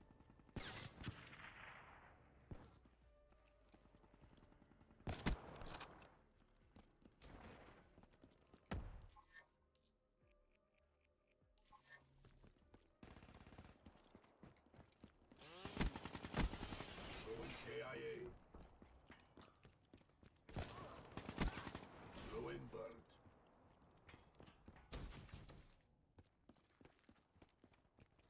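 Gunshots crack in rapid bursts in a video game.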